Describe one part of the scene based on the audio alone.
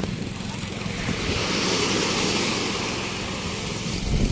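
Small waves wash and break on a shore.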